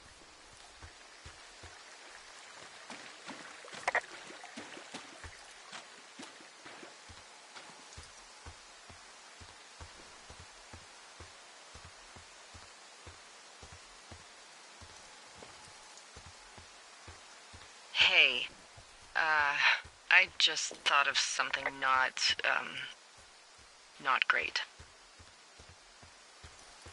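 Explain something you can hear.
Footsteps crunch steadily on dirt and gravel.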